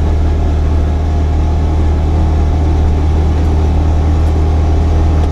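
Tyres rumble over a rough gravel road.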